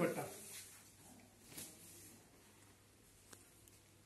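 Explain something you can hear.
Fabric rustles softly as a hand unfolds it.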